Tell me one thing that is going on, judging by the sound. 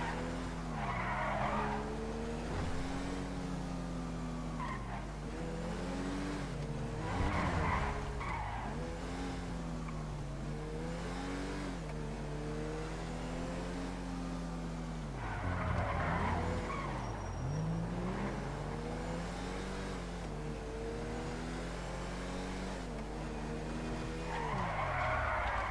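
Tyres screech in bursts as the car drifts.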